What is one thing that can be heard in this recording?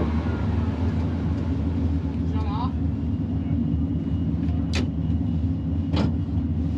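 A race car engine idles with a deep, steady rumble.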